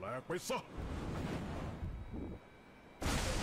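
A man speaks excitedly into a microphone.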